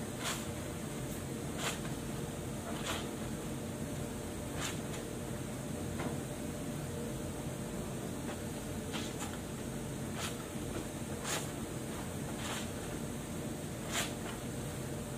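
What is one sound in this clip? Water splashes and drips into a basin.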